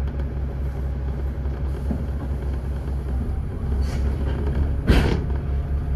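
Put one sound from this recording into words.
A van drives past close by.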